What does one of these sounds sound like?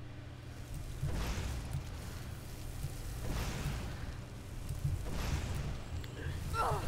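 A magic spell whooshes and hisses in bursts.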